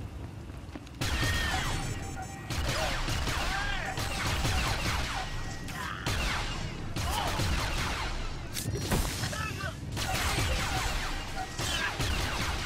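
Blaster shots zap and crackle in rapid bursts.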